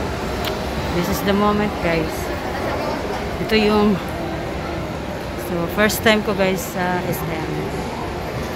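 A woman talks nearby in short bursts.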